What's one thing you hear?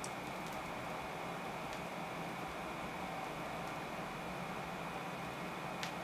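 A record plays on a turntable with steady music.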